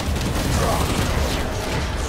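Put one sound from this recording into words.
A heavy machine gun fires.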